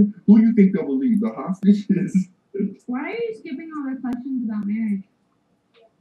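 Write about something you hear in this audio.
A young woman talks casually close to a microphone.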